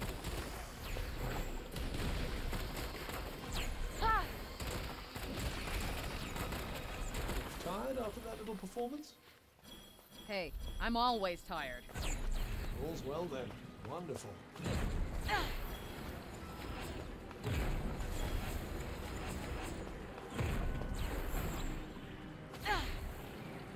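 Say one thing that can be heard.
Magic blasts burst with loud whooshes.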